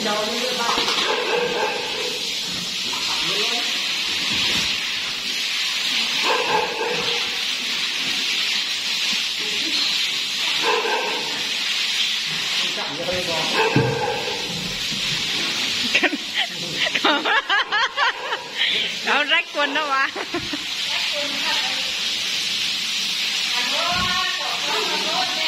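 Water sprays steadily from a hose and splashes on a hard floor.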